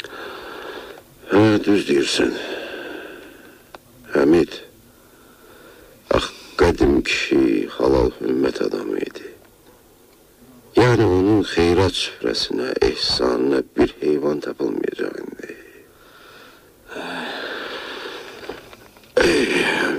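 A radio crackles and hisses between stations while it is tuned.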